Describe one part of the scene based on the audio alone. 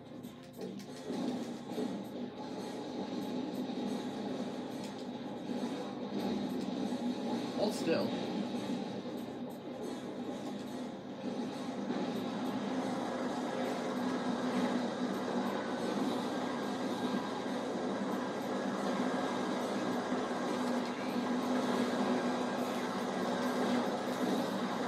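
Upbeat game music plays through a television speaker.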